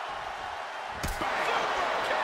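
A body slams hard onto a wrestling ring mat with a heavy thud.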